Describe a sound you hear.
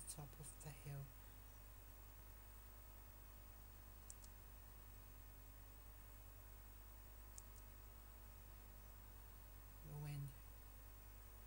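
A teenager makes a brief low murmur close to a microphone.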